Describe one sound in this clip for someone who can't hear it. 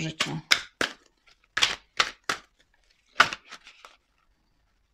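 Cards are shuffled by hand.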